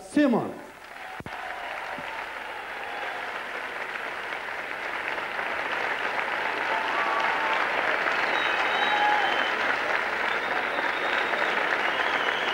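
A large audience applauds and cheers.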